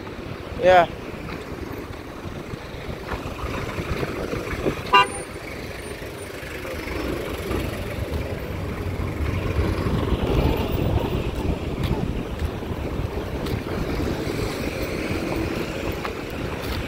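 Car engines hum and tyres roll past on a road outdoors.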